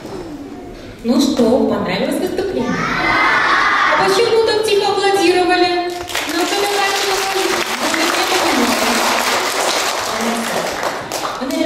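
A young woman speaks animatedly into a microphone, heard over loudspeakers in a hall.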